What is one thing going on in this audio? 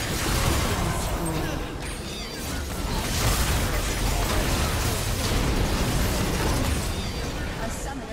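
Spell effects crackle and boom in a game fight.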